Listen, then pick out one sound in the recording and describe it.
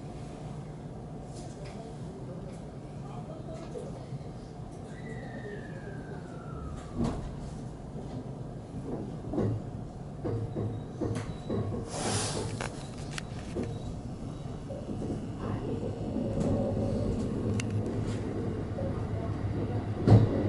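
An electric train rumbles along the track, heard from inside the cab.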